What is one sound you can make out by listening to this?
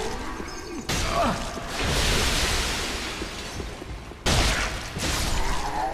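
A sword swishes and clangs against armour.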